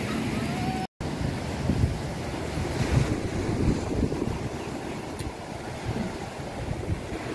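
Waves break and wash onto a shore.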